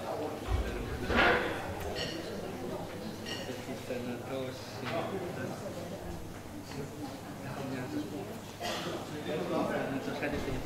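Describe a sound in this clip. Men and women talk quietly nearby in a room with a slight echo.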